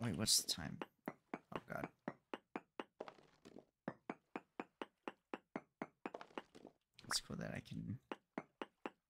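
A block of rock crumbles and breaks apart.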